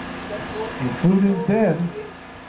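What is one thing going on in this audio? A calf bawls loudly.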